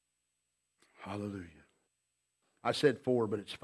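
A man speaks with emphasis into a microphone, with pauses between phrases.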